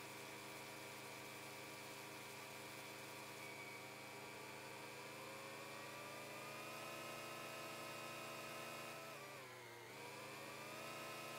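A tractor engine hums steadily, rising and dipping in pitch as it pulls a trailer.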